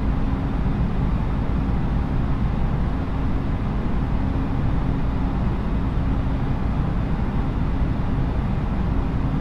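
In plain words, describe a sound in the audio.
Jet engines hum steadily with a low, constant roar.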